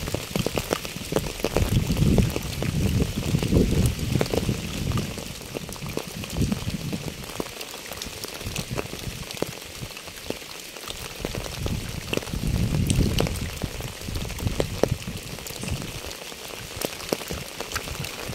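Rain patters steadily on a wet path and fallen leaves.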